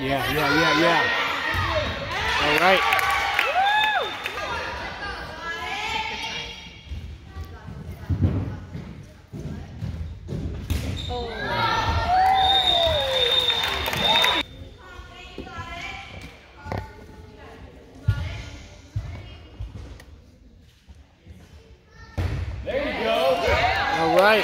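Young girls shout and cheer in a large echoing hall.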